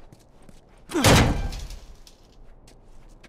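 A heavy door is pushed open with a loud bang.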